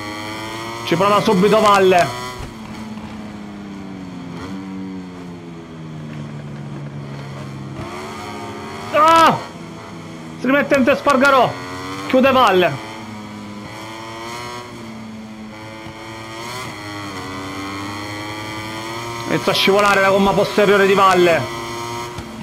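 A motorcycle engine revs up sharply in loud bursts.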